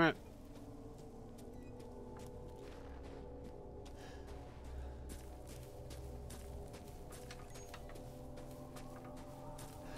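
Footsteps crunch through snow and brush.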